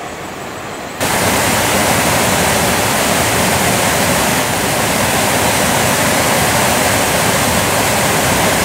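White-water rapids roar loudly and steadily.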